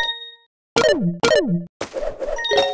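Cartoonish jumping sounds swoop down in pitch.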